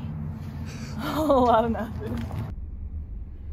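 A young woman exclaims close by.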